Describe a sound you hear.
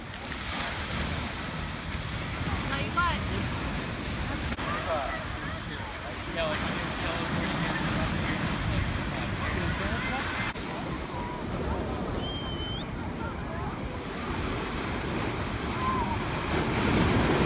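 Waves break and wash up on the shore.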